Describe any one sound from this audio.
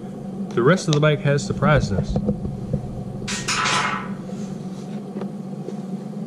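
A hand taps and rubs against a hard plastic cover.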